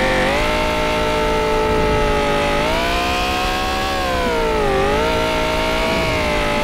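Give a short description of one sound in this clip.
A car engine roars at high revs, its pitch rising and dipping.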